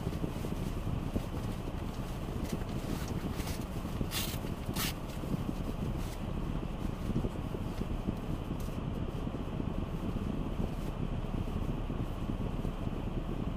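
A car engine idles, heard from inside the cabin.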